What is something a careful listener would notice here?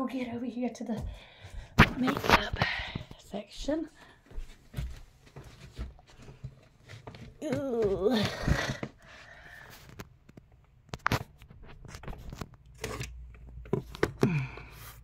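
Clothes rustle and knocks sound as a phone is handled close by.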